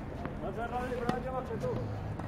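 A tennis racket hits a ball with a sharp pop.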